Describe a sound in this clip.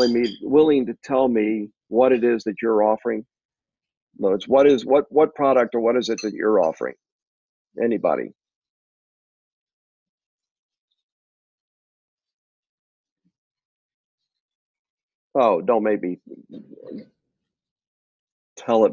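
A middle-aged man talks calmly and closely into a microphone, with pauses.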